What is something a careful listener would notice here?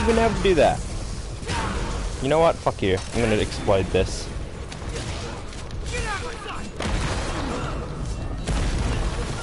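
Swords clash and slash with sharp metallic hits.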